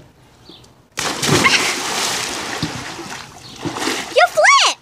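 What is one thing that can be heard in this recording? Water churns and sloshes.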